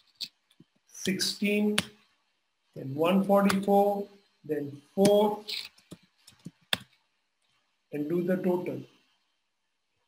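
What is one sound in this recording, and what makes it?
A man speaks calmly and explains, close to a microphone, with pauses.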